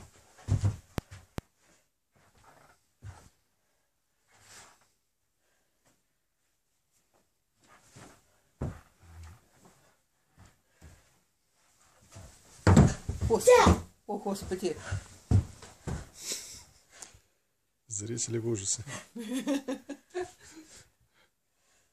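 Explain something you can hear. Cloth swishes sharply as a boy punches and kicks.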